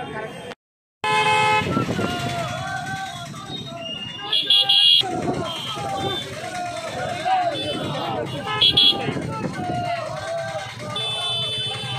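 Motorcycle engines rumble as riders move slowly in a procession.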